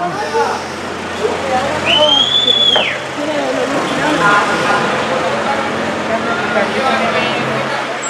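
Traffic hums steadily along a street.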